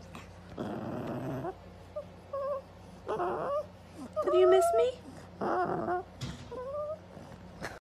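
A young woman talks in a high, playful voice close by.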